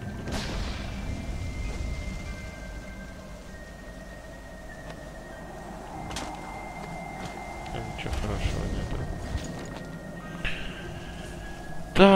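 Flames roar and crackle steadily.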